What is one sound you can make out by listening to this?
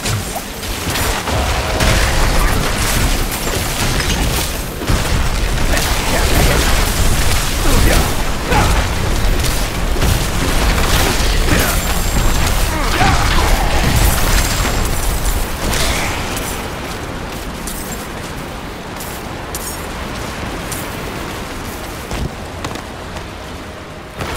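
Icy magic blasts crash and shatter over and over.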